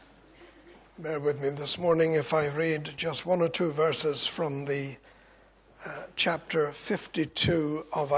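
An older man speaks steadily into a microphone.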